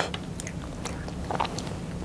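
A young woman speaks softly close to a microphone.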